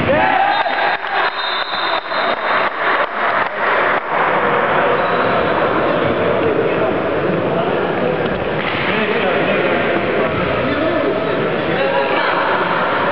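Young men talk and shout in a large echoing hall.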